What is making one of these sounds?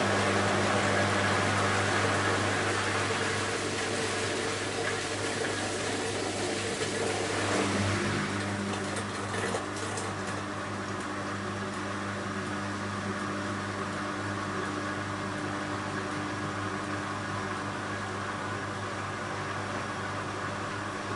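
Clothes thump softly as a washing machine drum tumbles.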